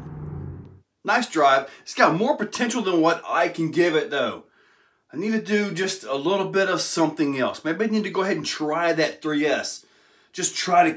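A man speaks calmly and close to the microphone.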